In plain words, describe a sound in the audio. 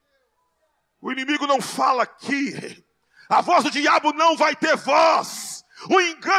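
A man speaks loudly and with passion into a microphone, heard through loudspeakers in a large room.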